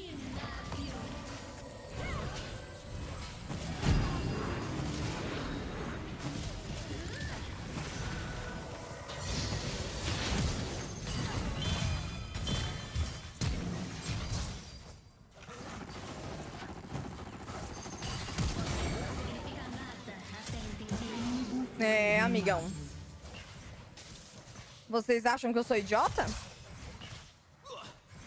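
Game spell and weapon effects crackle and clash in a busy fight.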